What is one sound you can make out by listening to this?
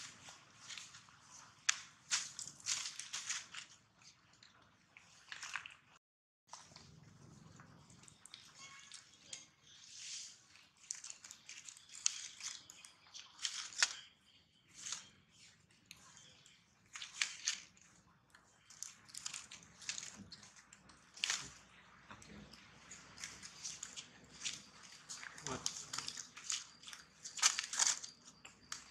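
Dry leaves rustle and crackle close by.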